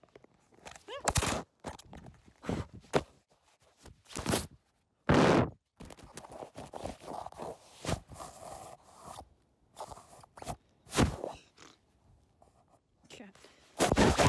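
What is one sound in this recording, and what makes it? A phone knocks and thumps as it is dropped and picked up.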